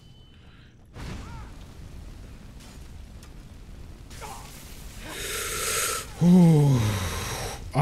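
A fire spell roars and crackles.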